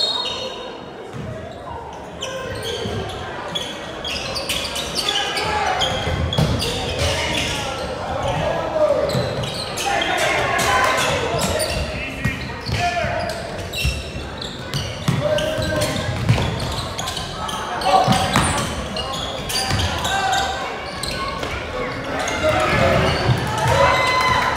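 A crowd of spectators chatters and cheers in a gym.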